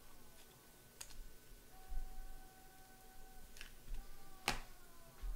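Plastic card holders click and rustle as hands handle them.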